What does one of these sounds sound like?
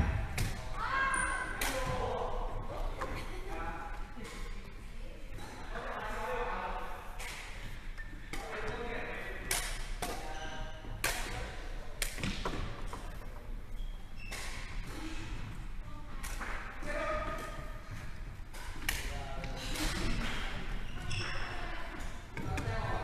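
Shuttlecocks are struck with sharp taps of rackets in a large echoing hall.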